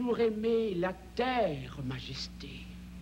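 A man sings in a strong, wavering voice.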